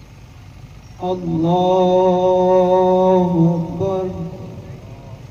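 A man chants loudly into a microphone over a loudspeaker, outdoors.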